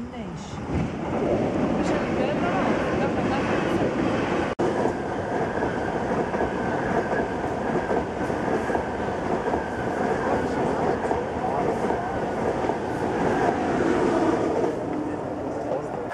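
An electric passenger train rushes past with a roar.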